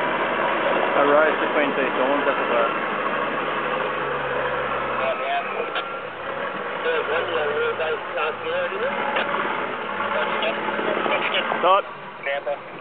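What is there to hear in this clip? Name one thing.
Tyres spin and churn in thick mud.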